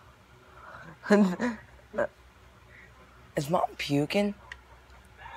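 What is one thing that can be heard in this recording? A teenage boy laughs out loud.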